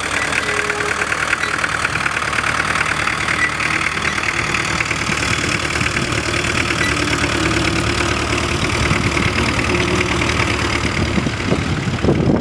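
A plough scrapes and crunches through dry stubble and soil.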